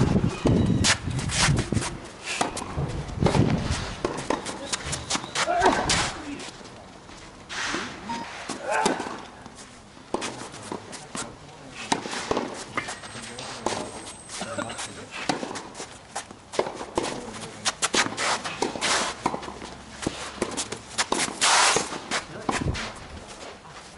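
Tennis shoes scuff and squeak on the court.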